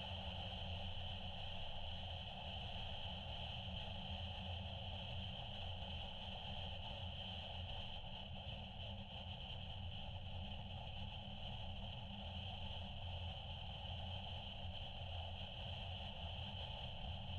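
Tyres roll steadily over the road.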